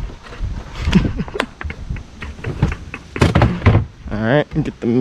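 Footsteps thud on a wooden deck.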